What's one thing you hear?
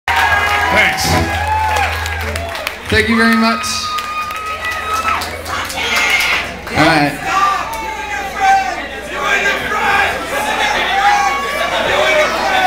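A rock band plays loudly through amplifiers in a room.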